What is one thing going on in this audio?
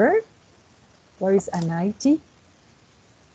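A woman speaks briefly over an online call.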